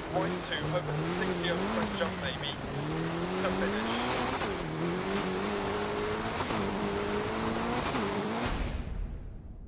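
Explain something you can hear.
Tyres crunch and hiss over snowy gravel.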